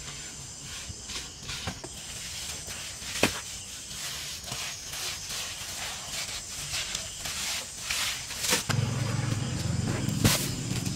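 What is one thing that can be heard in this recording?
A trowel scrapes and slaps wet cement.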